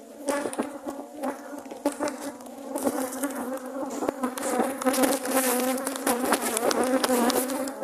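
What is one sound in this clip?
A tool scrapes and knocks against a beehive.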